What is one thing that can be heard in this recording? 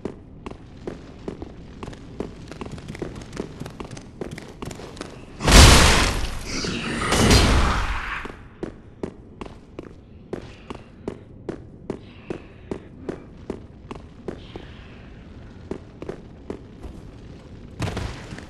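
Armoured footsteps clank rapidly on stone.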